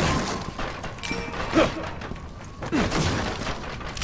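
A metal cabinet crashes over with a loud clang.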